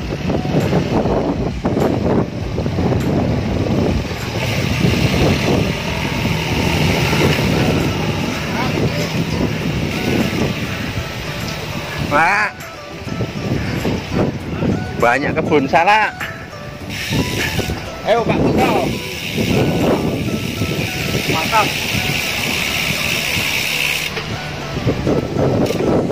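Wind buffets the microphone while riding outdoors.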